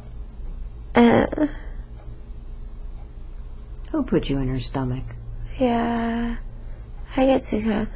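A young woman groans and whimpers in distress close by.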